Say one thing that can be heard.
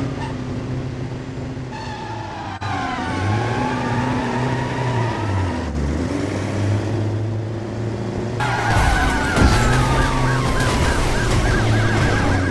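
A heavy truck engine roars steadily.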